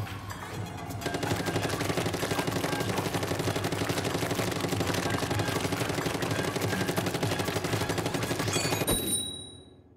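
A rapid stream of ink shots splatters in quick bursts.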